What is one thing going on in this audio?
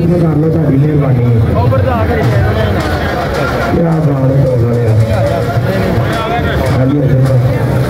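Two young men talk with each other up close.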